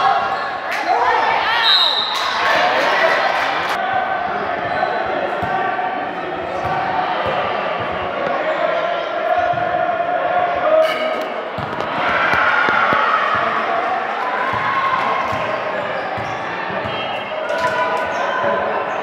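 Young girls shout and call out to each other, echoing in a large hall.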